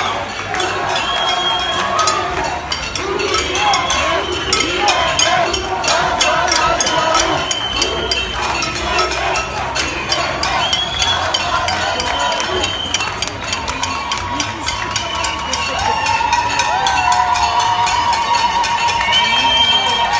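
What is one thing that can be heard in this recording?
Many people whistle shrilly in a crowd.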